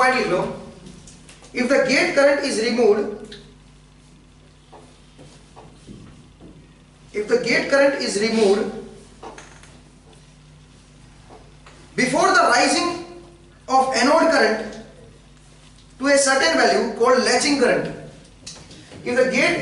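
A young man speaks calmly in bursts, with pauses between.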